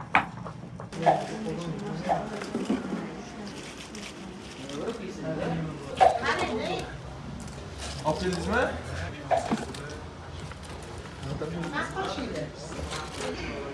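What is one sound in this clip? Crisp fried pieces rustle and crackle as hands move them.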